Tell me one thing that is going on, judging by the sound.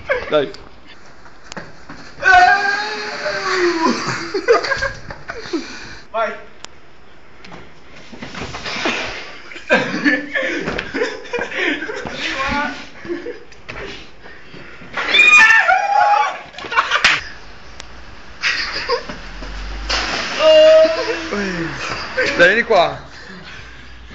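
Young men shout and laugh loudly nearby in an echoing room.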